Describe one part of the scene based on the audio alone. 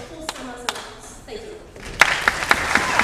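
A young woman speaks calmly into a microphone in a large hall.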